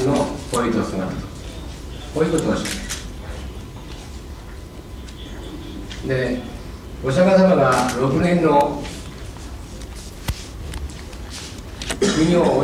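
An older man speaks calmly into a microphone, in bursts with pauses.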